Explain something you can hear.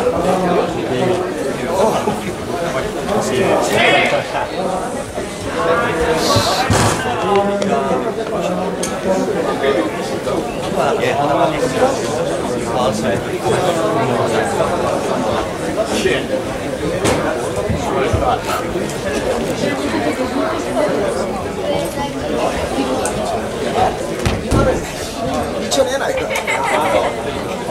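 Two grapplers scuffle and thud on a padded mat.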